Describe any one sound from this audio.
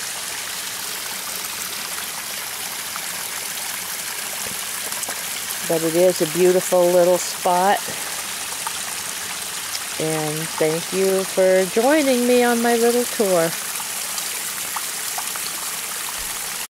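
Water trickles and splashes steadily over stones close by.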